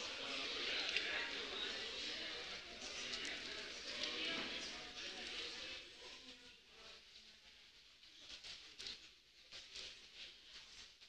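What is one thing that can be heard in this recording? A seated audience murmurs and chatters in a large echoing hall, then quiets down.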